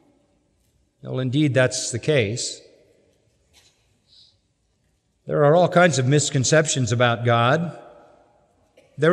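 An elderly man speaks slowly and earnestly through a microphone in a large hall.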